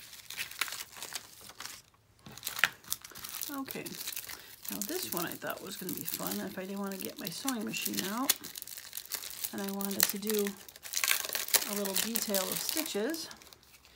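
A plastic sheet crinkles and rustles.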